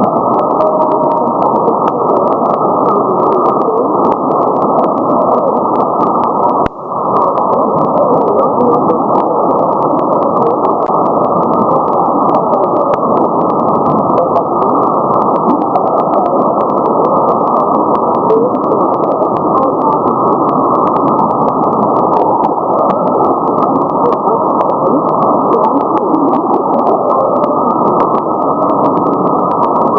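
Radio static hisses and crackles steadily from a shortwave receiver.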